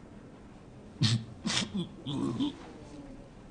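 An older man speaks calmly, up close.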